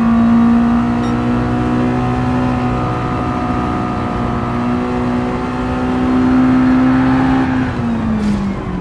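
A racing car engine drones steadily at high revs, then drops in pitch near the end.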